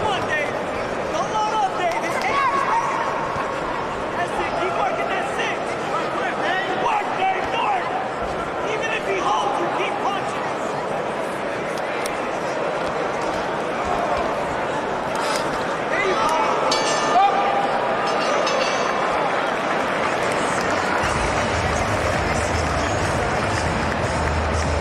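People in the crowd shout encouragement.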